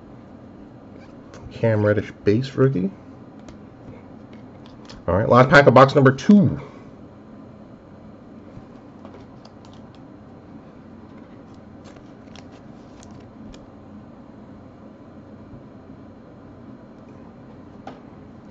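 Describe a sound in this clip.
Trading cards rustle and click softly as hands flip through them.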